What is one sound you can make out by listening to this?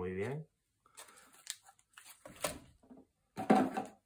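A plastic wrapper crinkles as it is handled.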